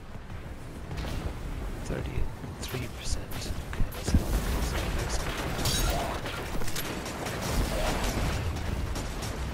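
Gunfire from a game weapon crackles in rapid bursts.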